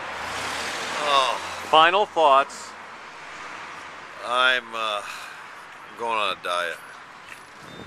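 A middle-aged man speaks close by in short, strained bursts.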